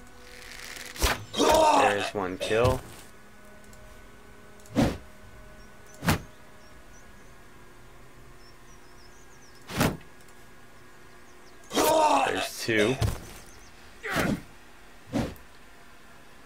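Blades strike in short bursts of sharp hits.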